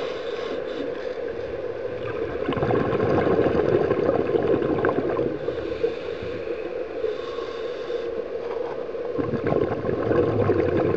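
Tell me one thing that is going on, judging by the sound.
A low, muffled underwater rumble and hiss goes on steadily.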